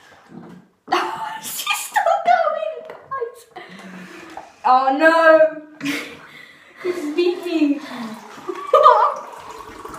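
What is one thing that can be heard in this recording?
A young boy talks and laughs excitedly up close.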